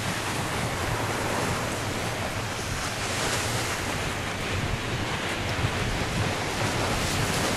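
Small waves wash onto a sandy shore.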